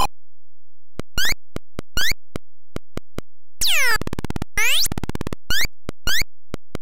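Retro game sound effects beep, chirp and sweep in quick bursts.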